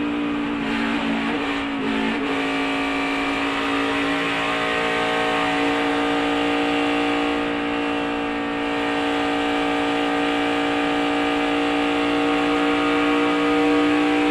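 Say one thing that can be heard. A race car engine roars steadily at high speed, close by.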